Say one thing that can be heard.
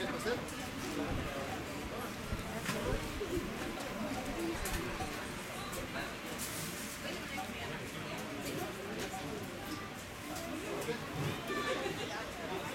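Several men and women chat at once in a busy, lively murmur nearby.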